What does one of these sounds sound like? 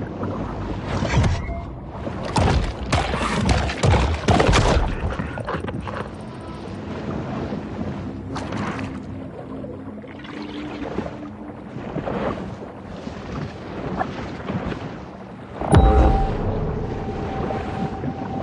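Water swishes and rushes as a shark swims underwater.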